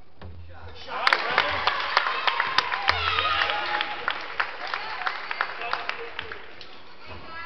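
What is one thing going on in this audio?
A crowd of spectators cheers and claps loudly in an echoing gym.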